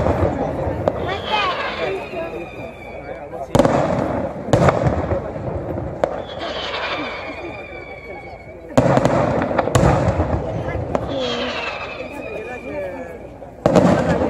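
Whistling firework shells shriek as they rise far off.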